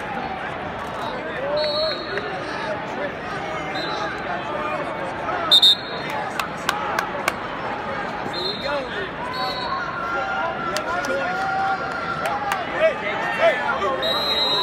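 A large crowd murmurs and chatters in an echoing arena.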